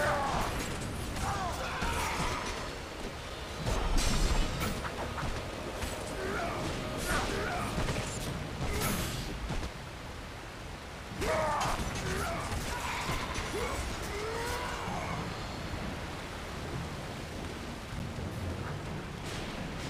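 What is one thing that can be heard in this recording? Rushing water roars steadily.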